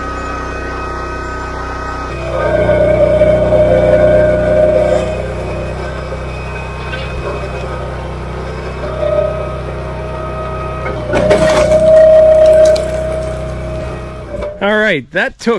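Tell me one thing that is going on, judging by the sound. An engine runs with a steady low drone.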